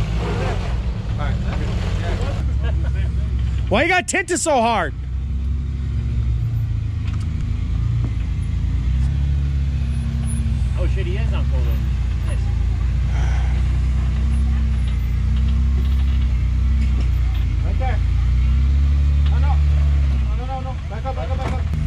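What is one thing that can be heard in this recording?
An engine rumbles and revs as an off-road vehicle crawls over rock.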